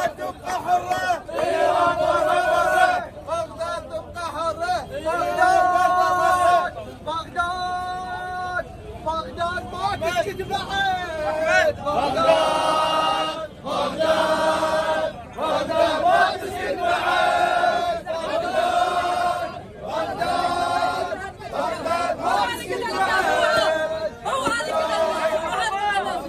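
A crowd of men chants loudly in rhythm outdoors.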